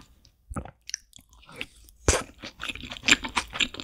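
Chopsticks tap against a plate.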